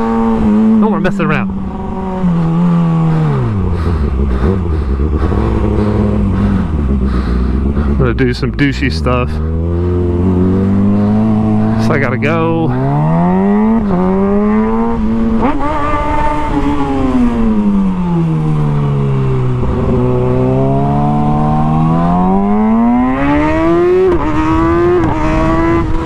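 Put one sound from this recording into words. A motorcycle engine idles, then revs up and down as the bike rides along.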